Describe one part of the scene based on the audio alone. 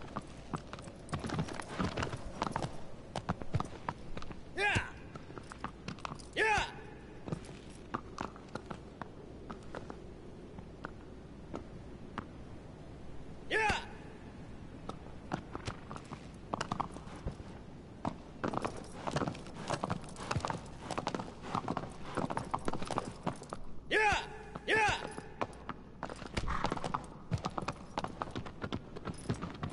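Horse hooves clop on stone.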